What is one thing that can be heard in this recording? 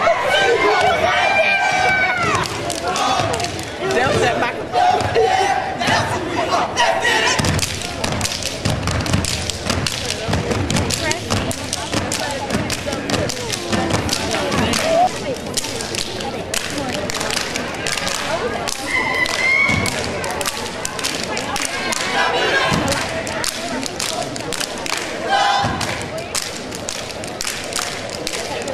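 Dancers' feet stomp and shuffle on a hard floor in a large echoing hall.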